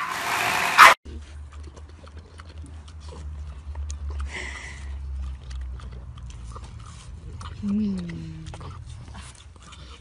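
A dog chews and slurps wet watermelon.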